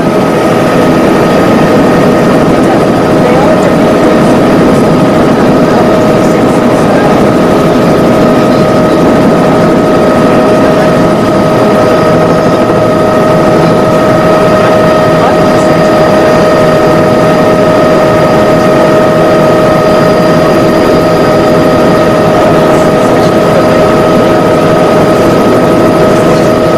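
Wind rushes past the aircraft.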